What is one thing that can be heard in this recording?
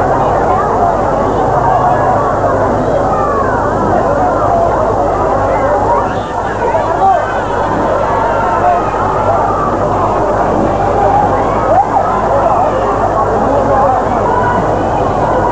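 A crowd chatters and calls out nearby, outdoors.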